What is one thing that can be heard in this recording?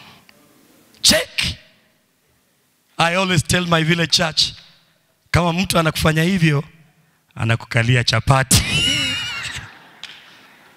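A man speaks with animation through a microphone in an echoing hall.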